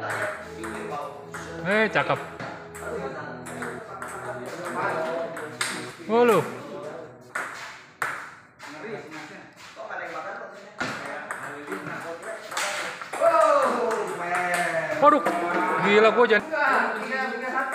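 A ping-pong ball clicks back and forth off paddles and a table.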